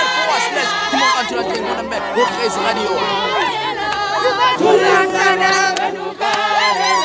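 A young man speaks loudly and with passion, close by.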